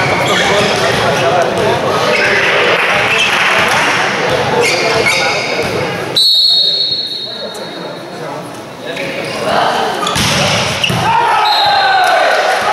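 A volleyball thumps off players' hands.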